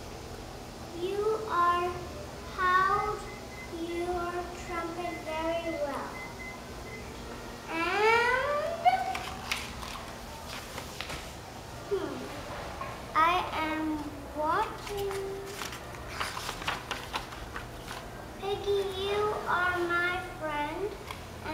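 A young girl reads aloud in a high voice, close by.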